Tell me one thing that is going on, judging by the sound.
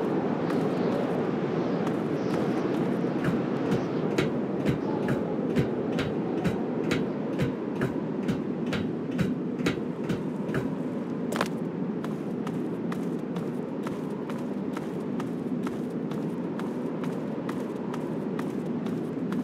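Footsteps clang steadily on metal walkway steps.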